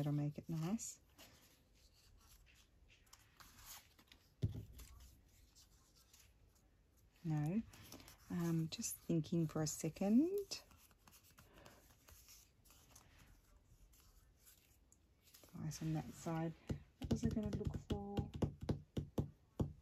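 Paper and cloth rustle softly under handling.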